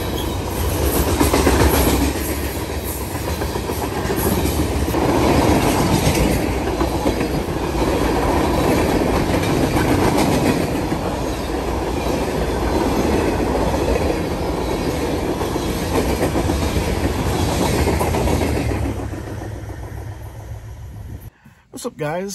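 Freight train cars rumble and clatter loudly past on the tracks.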